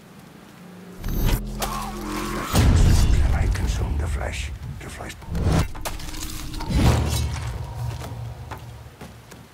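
Bodies scuffle and thud in a close struggle.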